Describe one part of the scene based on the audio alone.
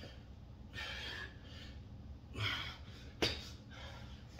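Dumbbells knock against a hard floor.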